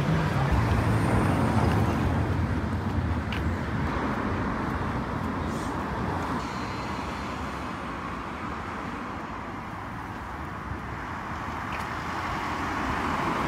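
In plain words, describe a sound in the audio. Traffic hums along a nearby street outdoors.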